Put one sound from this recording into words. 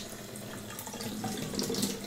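Hands splash and rinse under running water.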